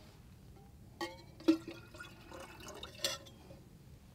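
A metal cup clinks against a metal bottle.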